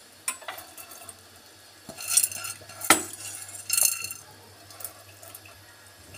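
Peanuts patter into a pot of thick sauce.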